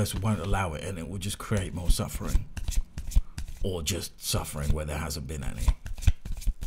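A man speaks softly and calmly close to a microphone.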